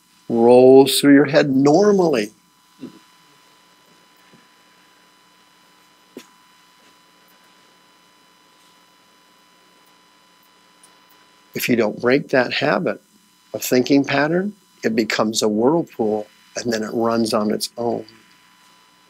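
A man speaks calmly into a microphone in a room with slight echo, pausing between phrases.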